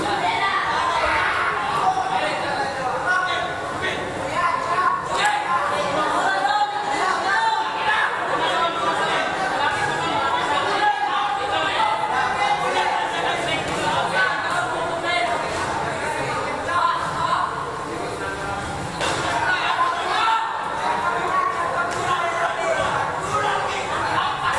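A crowd shouts and cheers throughout, echoing in a large hall.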